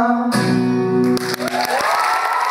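An acoustic guitar is strummed through loudspeakers.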